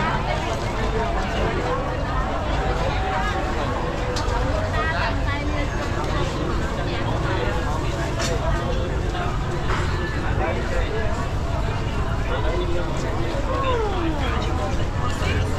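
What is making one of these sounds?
A busy crowd chatters all around outdoors.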